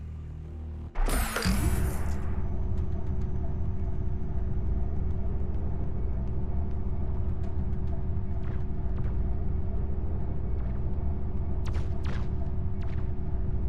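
A lift rumbles and hums steadily as it rises.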